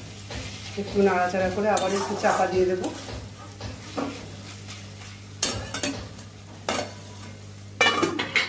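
A metal spatula scrapes and stirs food in a metal pan.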